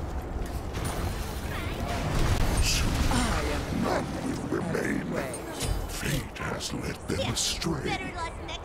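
Magical blasts whoosh and burst in quick succession.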